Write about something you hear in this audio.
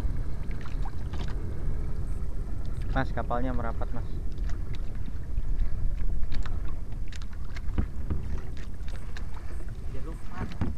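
Water laps and splashes against a boat's hull.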